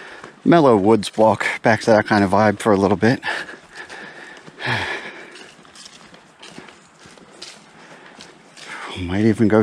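Footsteps crunch on dry leaves along a forest path.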